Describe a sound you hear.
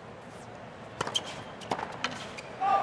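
A tennis ball bounces on a hard court.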